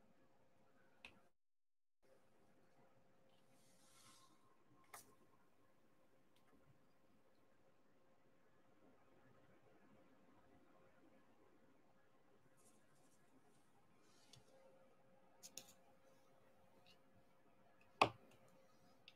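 Small plastic beads click softly as fingers press them into place.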